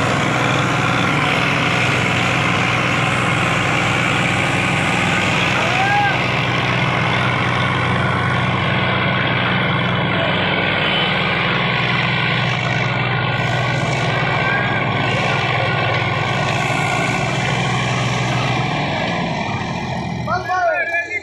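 Tractor engines roar steadily under heavy strain.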